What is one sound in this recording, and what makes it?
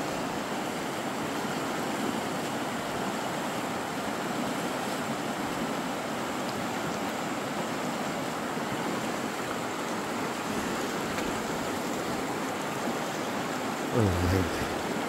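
A river rushes steadily over rocks close by.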